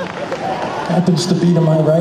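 A woman sings into a microphone over loudspeakers.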